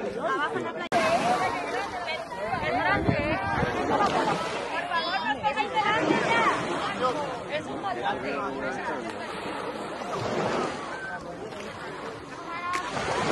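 Children chatter and call out outdoors.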